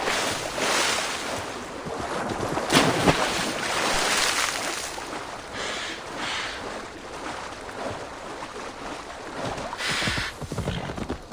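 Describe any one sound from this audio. A horse wades and splashes through water.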